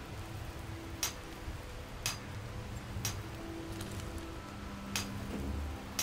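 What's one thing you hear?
A pickaxe strikes rock at a steady pace.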